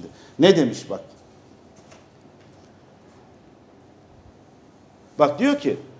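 A middle-aged man speaks calmly into a close microphone, pausing between phrases.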